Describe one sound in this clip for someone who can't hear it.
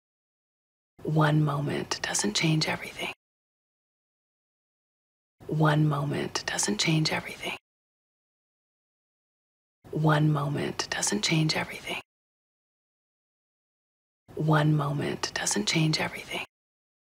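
A woman speaks softly and warmly, close by, in short repeated phrases with silent pauses between.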